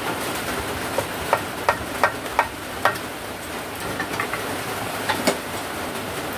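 A hammer taps a screwdriver against a metal engine casing.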